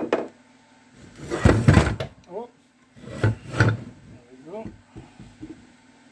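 A heavy metal casing clunks and scrapes on a bench.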